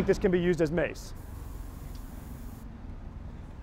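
A spray can hisses.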